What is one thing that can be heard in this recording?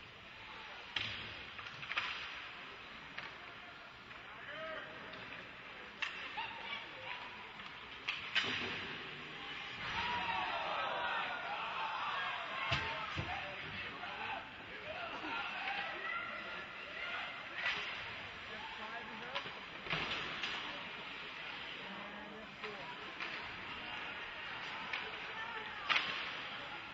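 Hockey sticks slap a puck with sharp clacks.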